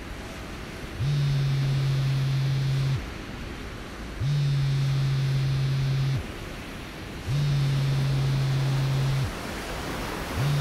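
A phone rings in repeated steady electronic bursts.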